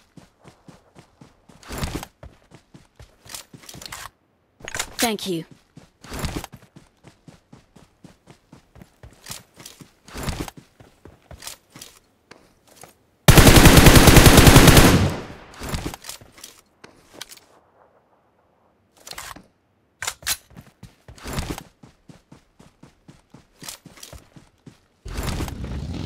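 Footsteps thud through grass.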